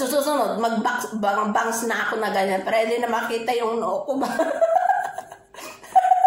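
A woman talks close to the microphone, chatting with animation.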